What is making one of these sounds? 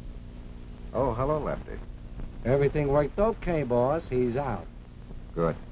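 A man talks with animation, heard through a telephone.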